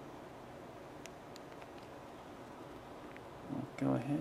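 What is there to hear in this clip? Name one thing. Fingers click softly on phone keys.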